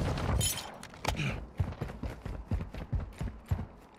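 Footsteps tap on a hard roof.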